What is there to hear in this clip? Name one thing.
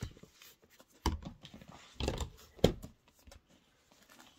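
Paper rustles and crinkles in a man's hands.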